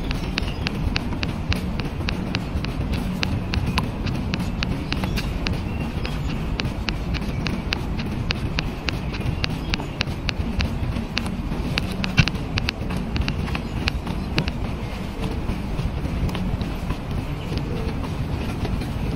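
Footsteps tap steadily on a hard concrete walkway.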